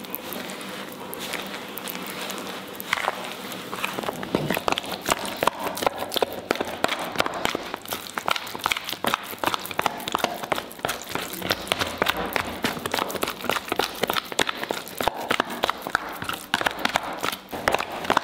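Fingers squelch and squish through a wet, crumbly dough.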